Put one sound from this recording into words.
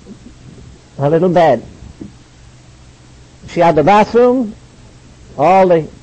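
An elderly man speaks emphatically in short bursts.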